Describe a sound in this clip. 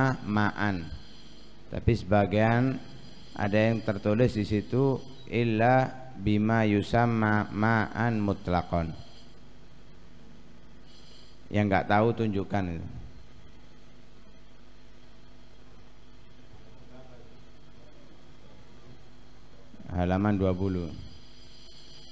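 A young man speaks calmly into a microphone, with long pauses.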